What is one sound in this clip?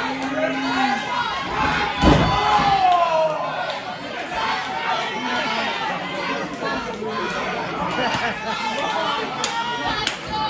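A small crowd chatters and shouts.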